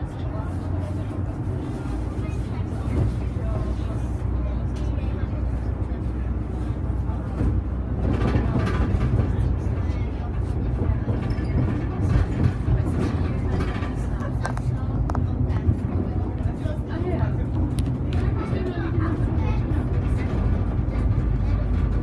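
The bus body rattles and clatters as it drives.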